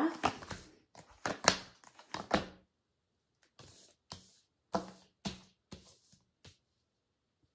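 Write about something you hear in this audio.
Cards shuffle and slap together in hands.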